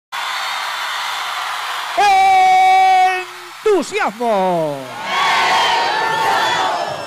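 A large crowd cheers loudly outdoors.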